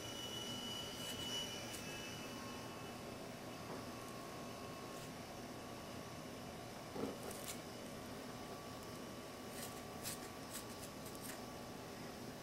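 Shears snip through meat with sharp clicks.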